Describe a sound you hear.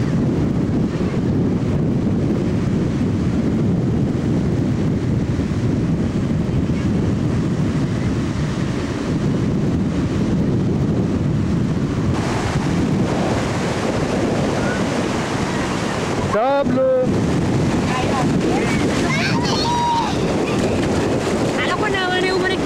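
Ocean waves break and wash onto a beach.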